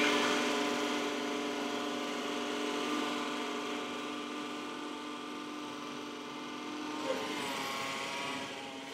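A battery-powered cylinder mower whirs as it cuts grass, fading into the distance.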